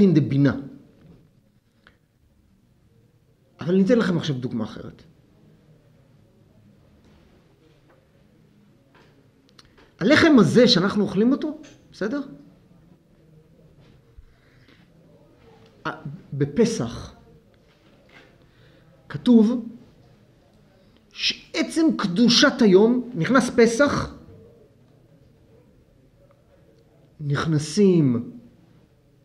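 An elderly man speaks calmly into a microphone, in bursts with long pauses.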